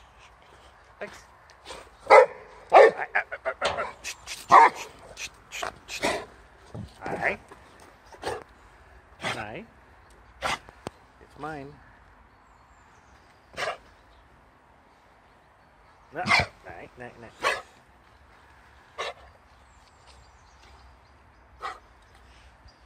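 A dog barks excitedly close by.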